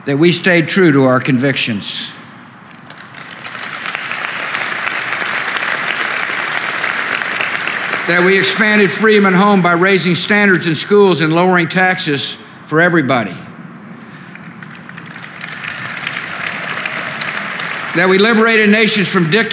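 A man speaks calmly in short bursts.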